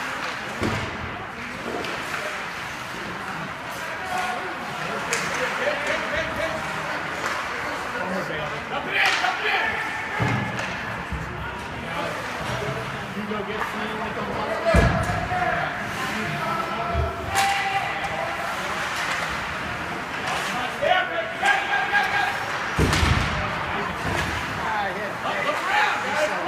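Spectators cheer and shout in a large echoing rink.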